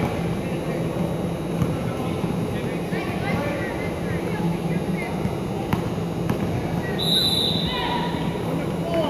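Basketballs bounce on a hard floor.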